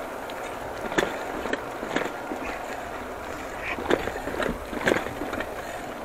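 A bicycle rattles and clunks as it bumps over rails.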